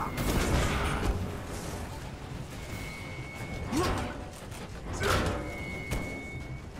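Heavy blows and metallic clanks land in a close fight.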